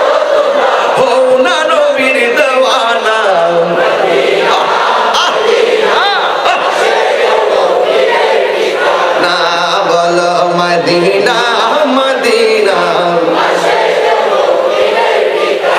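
A young man chants melodically into a microphone, amplified over loudspeakers.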